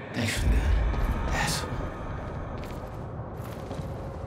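Footsteps run across the ground.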